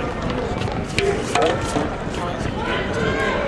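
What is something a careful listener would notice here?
A rubber ball bounces on concrete.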